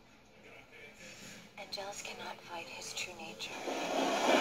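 A woman speaks calmly through a small speaker.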